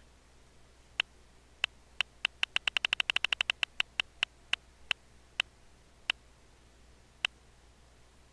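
A prize wheel spins with rapid ticking clicks that speed up and then slow to a stop.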